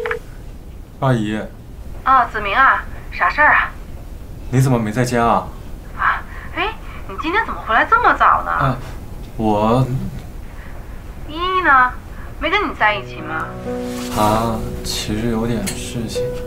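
A young man talks calmly into a phone.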